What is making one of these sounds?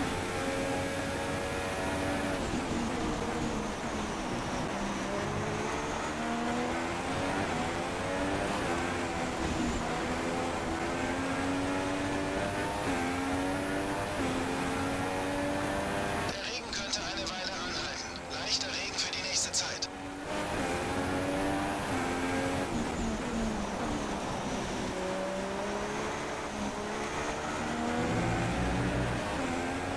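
A racing car engine screams, revving up and dropping with each gear change.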